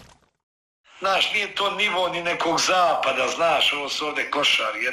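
A middle-aged man talks calmly and close up.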